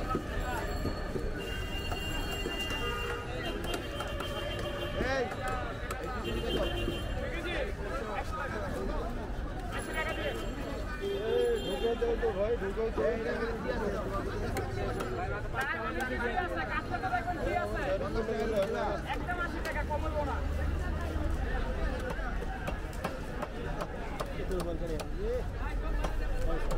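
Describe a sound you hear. Several men talk nearby in a busy outdoor crowd.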